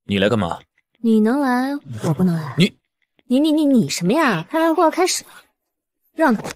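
A young woman answers with a mocking tone, close by.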